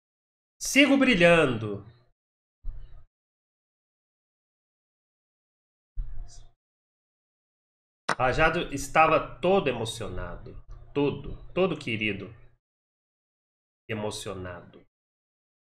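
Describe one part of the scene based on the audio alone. A young man talks with animation into a close microphone, in bursts with pauses.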